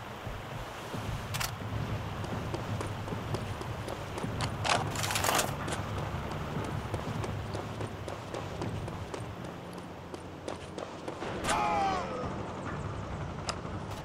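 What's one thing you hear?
Footsteps tramp steadily on hard ground.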